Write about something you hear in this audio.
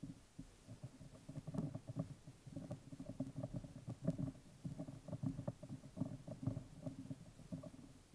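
A small metal tool scrapes and clicks against a screw.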